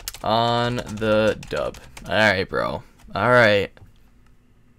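A young man speaks with animation close to a microphone.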